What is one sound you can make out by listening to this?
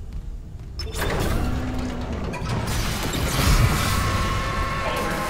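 Heavy machinery clanks and rumbles as a large mechanical arm moves.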